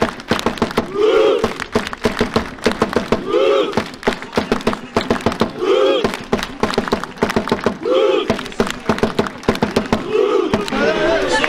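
A large crowd of fans chants loudly together outdoors, in bursts.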